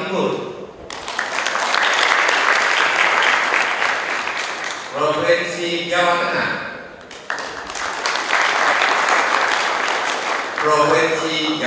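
A crowd applauds and cheers in a large hall.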